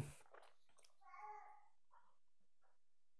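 A man slurps a hot drink.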